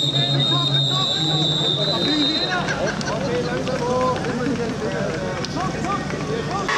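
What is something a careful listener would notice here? A crowd of spectators chatters and calls out outdoors, some distance away.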